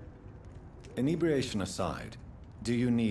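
A younger man asks a question calmly close by.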